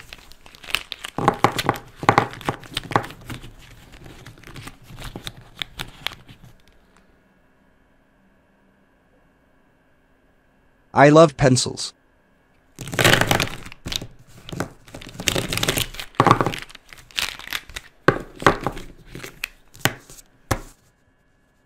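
Plastic markers clatter and click together in handfuls.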